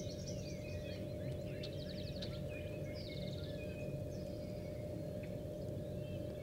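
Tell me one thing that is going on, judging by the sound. Several birds chirp, trill and whistle nearby.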